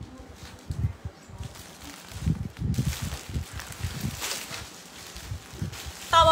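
Fabric rustles as clothing is handled.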